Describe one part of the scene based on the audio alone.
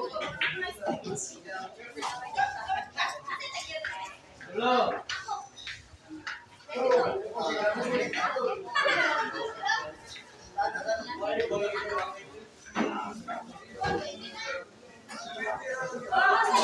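A crowd of men chatters and calls out loudly nearby.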